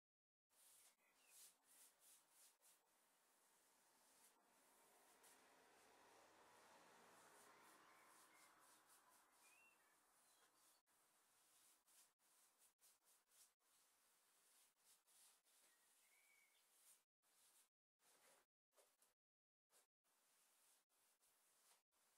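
A paintbrush swishes softly across a wooden surface.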